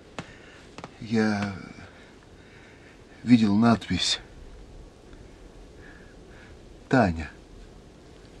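A man speaks in a low, tense voice, in short bursts.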